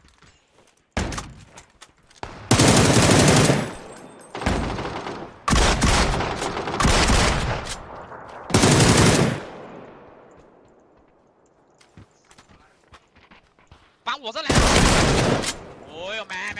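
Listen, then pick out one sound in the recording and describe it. Rifle gunfire rattles in loud, rapid bursts.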